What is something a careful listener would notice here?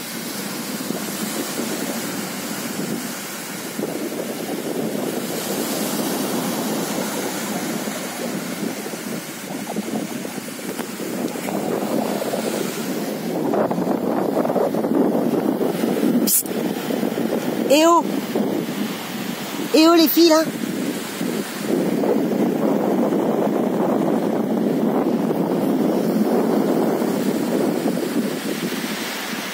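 Waves wash onto a beach steadily.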